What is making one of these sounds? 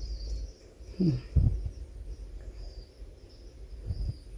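Metal engine parts knock softly as hands handle them.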